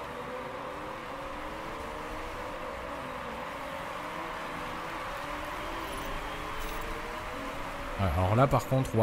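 Racing car engines whine and drone as cars speed along a track.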